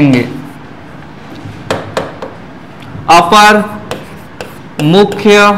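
A marker taps and squeaks on a board.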